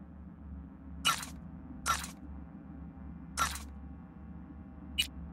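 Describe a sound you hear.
Menu clicks sound in short, sharp ticks.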